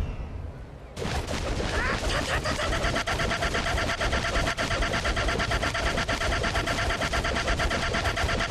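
Rapid punches thud in a fast, unbroken flurry.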